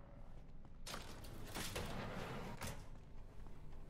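A metal security gate rattles as it slides open.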